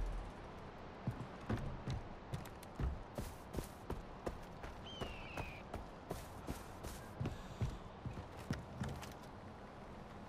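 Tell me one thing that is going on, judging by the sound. Footsteps crunch at a steady walking pace.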